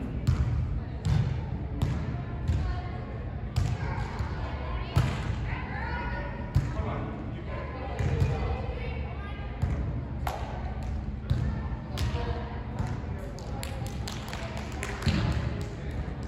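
A volleyball is struck with sharp thumps in a large echoing hall.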